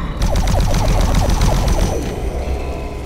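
An energy gun fires in a rapid burst.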